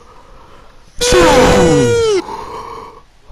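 A man shouts a long, drawn-out cry into a microphone.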